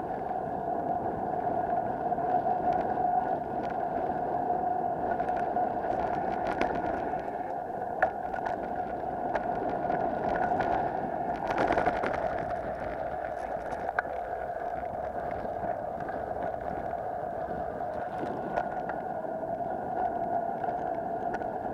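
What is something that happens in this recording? Bicycle tyres roll and crunch over a gravel trail.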